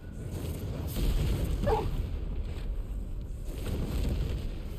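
A fiery blast bursts with a deep rumble.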